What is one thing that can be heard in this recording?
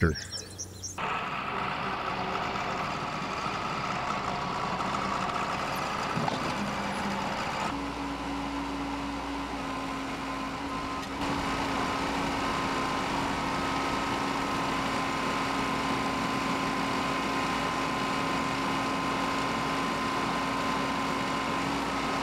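A tractor engine idles steadily close by.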